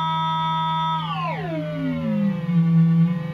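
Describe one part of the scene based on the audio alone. A modular synthesizer tone glides down sharply in pitch.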